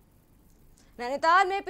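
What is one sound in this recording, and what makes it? A young woman speaks clearly, reading out news.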